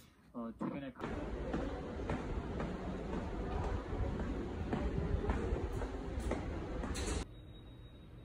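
Footsteps go down stone stairs.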